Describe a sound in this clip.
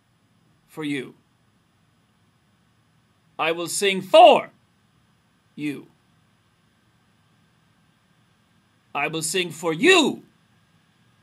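A man speaks close up in short, calm phrases with pauses.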